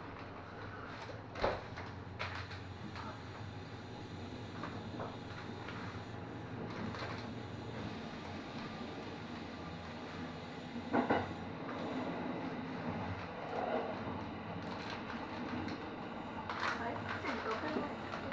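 A train rumbles steadily along the rails from inside the driver's cab.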